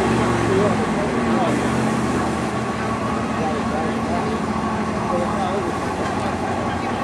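A diesel pickup truck engine rumbles steadily nearby.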